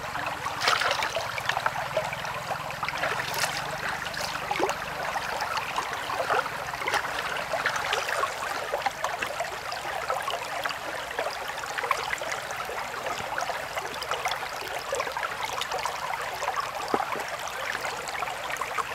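A stream flows and babbles steadily close by.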